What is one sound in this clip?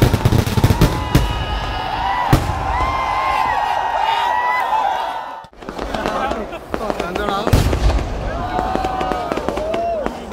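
Fireworks crackle and sizzle overhead.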